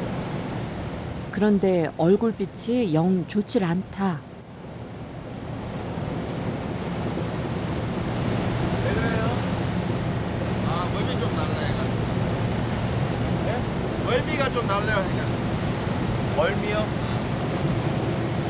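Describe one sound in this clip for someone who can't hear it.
Water churns and rushes in a boat's wake.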